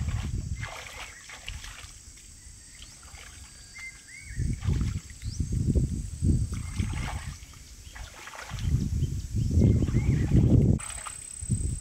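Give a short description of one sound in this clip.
Water splashes as a boy washes his hands in shallow water.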